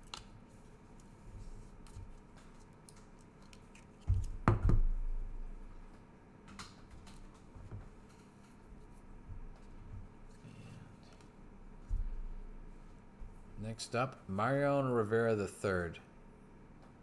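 Hard plastic card cases click and tap as they are handled up close.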